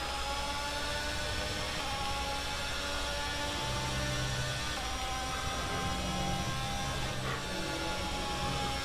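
A racing car engine whines at high revs, rising and dropping as the gears change.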